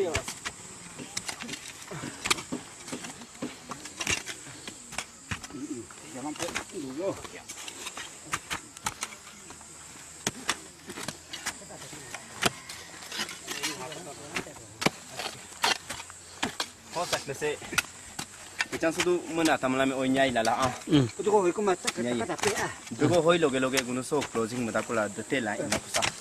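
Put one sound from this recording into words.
Hoes and spades thud and scrape into soil.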